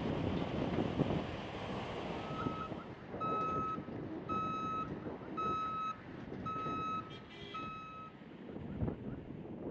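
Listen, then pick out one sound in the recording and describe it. A heavy vehicle's engine rumbles and drones.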